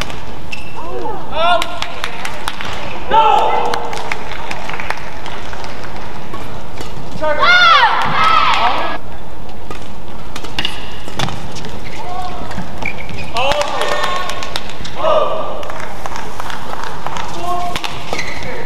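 A shuttlecock is struck sharply back and forth by rackets.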